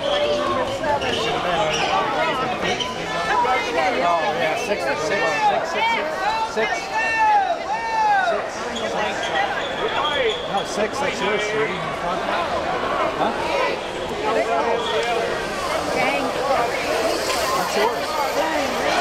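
A crowd of men and women shouts and cheers loudly outdoors.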